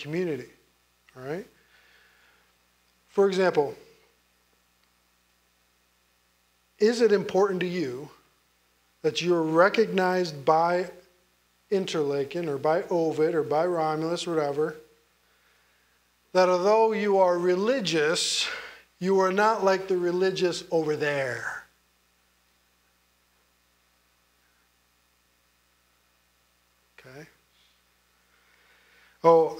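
A man speaks with animation into a microphone, pausing often.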